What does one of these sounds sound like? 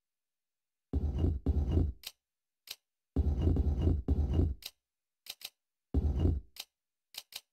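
Heavy stone discs grind and rotate in short bursts.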